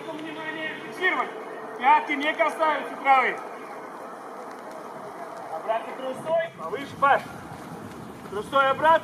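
Young men call out to each other outdoors.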